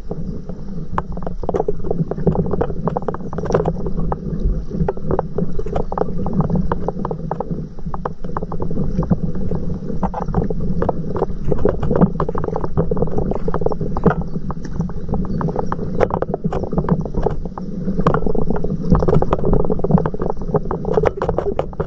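Water laps and splashes close by against a small boat.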